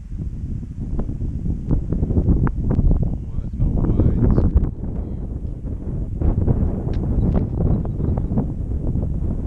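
Strong wind buffets the microphone outdoors with a low, gusty rumble.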